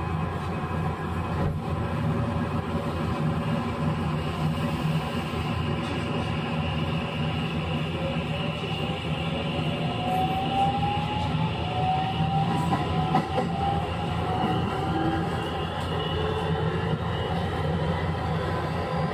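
An electric train rumbles along the tracks with a rising motor whine.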